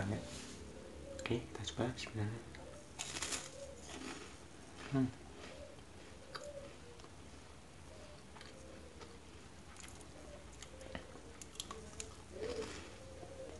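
A young man bites and crunches a crisp snack.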